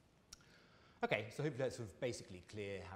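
A man speaks calmly, lecturing.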